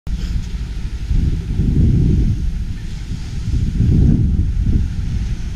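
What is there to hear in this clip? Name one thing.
Wind blows in low, gusty rumbles outdoors.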